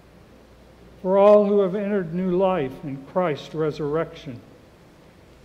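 A man chants a short sung line through a microphone in a large echoing room.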